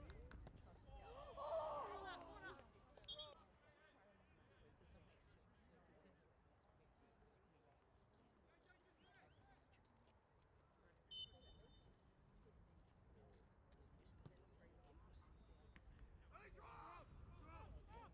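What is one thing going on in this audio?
Adult spectators shout from the sideline nearby, outdoors.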